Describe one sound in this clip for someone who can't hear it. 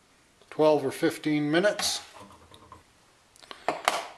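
A plastic lid clacks as it is set down.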